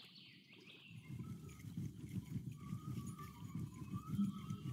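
A fishing reel whirs as a line is wound in.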